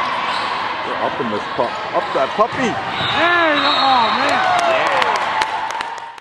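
Young women shout short calls across a large echoing gym.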